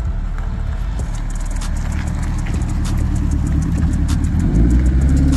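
A sports car engine idles with a deep, lumpy rumble.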